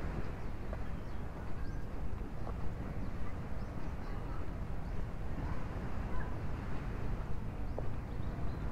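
Wind blows and rumbles steadily outdoors.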